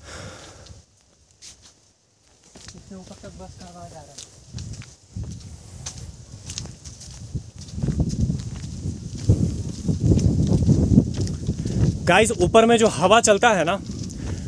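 Footsteps climb stone steps outdoors.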